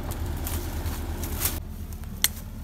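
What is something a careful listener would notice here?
Footsteps rustle through leafy undergrowth.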